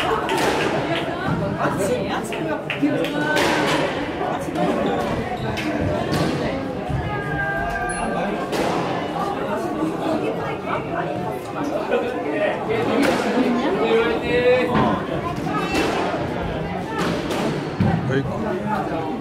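Squash rackets smack a ball in an echoing court.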